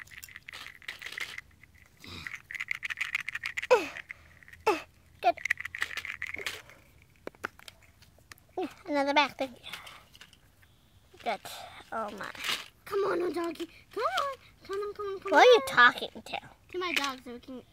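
Small plastic toys tap and clatter against each other on dry ground.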